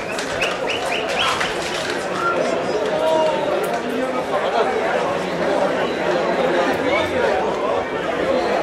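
A crowd of men and women shouts and chatters outdoors nearby.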